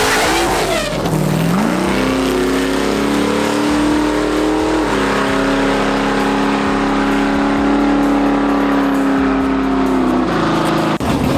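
A car engine roars and revs up as the car launches away.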